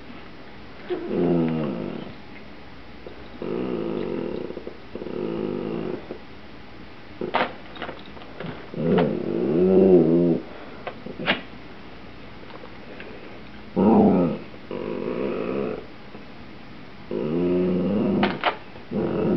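A man speaks calmly close by.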